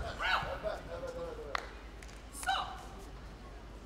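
A woman calls out sharp commands in a large echoing hall.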